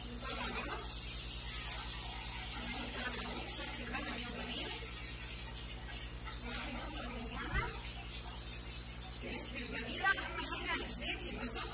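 Oil sizzles in a frying pan.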